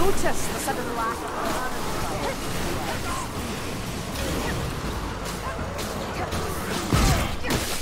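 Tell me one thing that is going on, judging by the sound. Flames roar and crackle.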